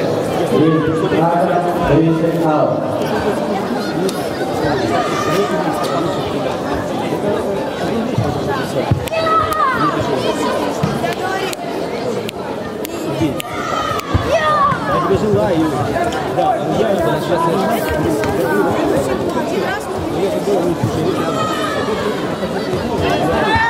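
Feet thud and slap on a mat as two fighters spar.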